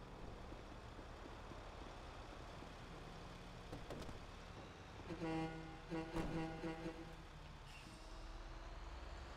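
A heavy truck engine idles with a low rumble.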